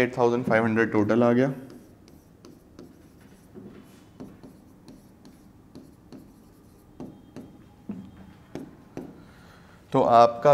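A marker taps and squeaks on a board while writing.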